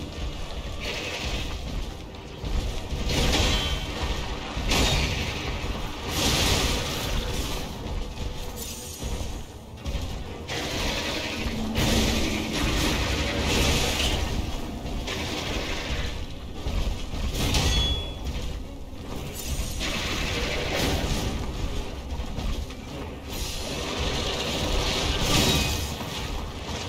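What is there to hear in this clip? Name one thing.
Heavy blows clang and crash as a huge sword strikes a monster.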